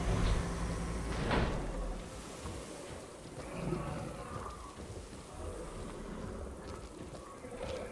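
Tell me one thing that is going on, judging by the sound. A hippo's heavy footsteps thud on sand.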